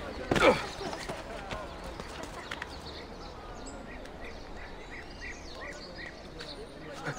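Hands grab and scuff on a stone wall during a climb.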